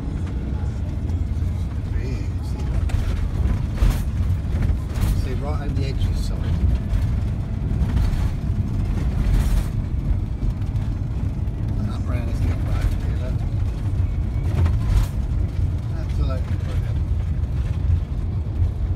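Tyres roll over a road with a low roar.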